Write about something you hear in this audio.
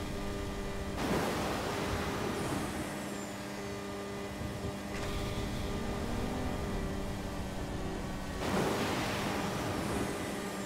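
A rocket booster roars in short bursts.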